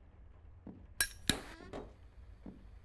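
A wooden door clicks and creaks open.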